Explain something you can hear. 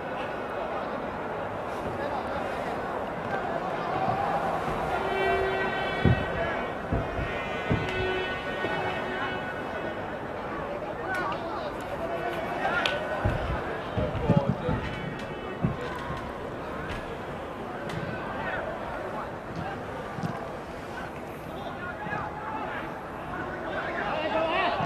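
A stadium crowd murmurs and chants steadily in the distance.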